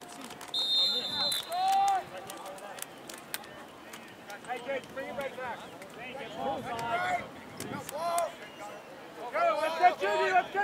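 Young players shout and cheer loudly nearby.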